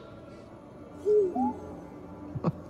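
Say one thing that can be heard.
A small robot chirps and beeps.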